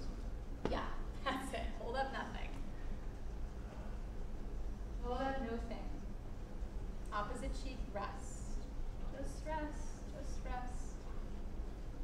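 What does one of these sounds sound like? A young woman speaks calmly and slowly, pausing between phrases.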